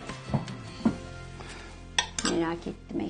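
A spoon clinks against a small bowl.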